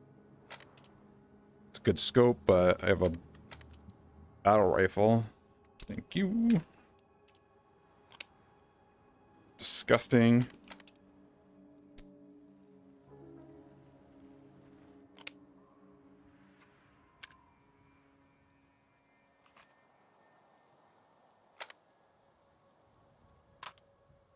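A case's metal latches click open and shut.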